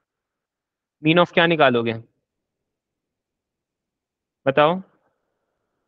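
A young man speaks calmly into a microphone, close by.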